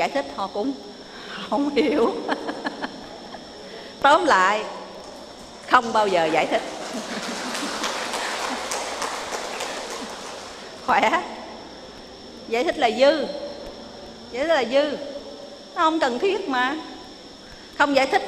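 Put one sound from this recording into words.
An elderly woman speaks calmly and warmly into a microphone.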